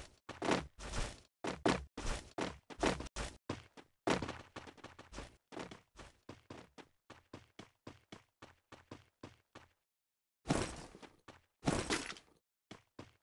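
Quick footsteps run over ground and wooden planks.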